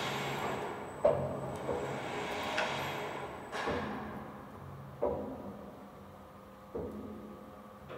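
Heavy metal clanks and bangs.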